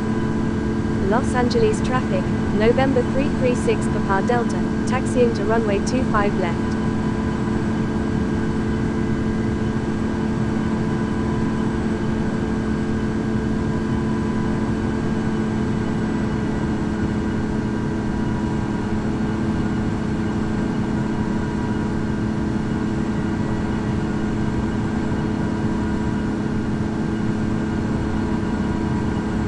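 A jet engine roars steadily with a droning hum.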